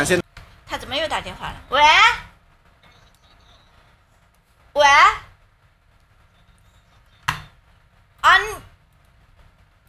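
A young woman speaks over a phone line.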